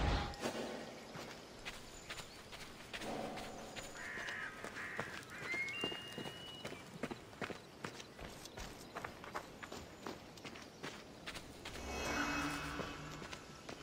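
Footsteps run quickly over stone and dirt.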